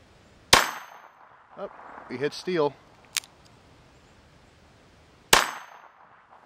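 A pistol fires loud shots outdoors, with a sharp echo.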